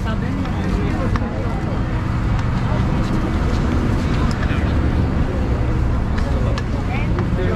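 A busy street crowd murmurs around.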